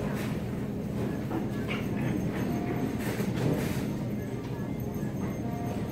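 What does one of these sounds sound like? Shoppers and cashiers murmur indistinctly in the distance.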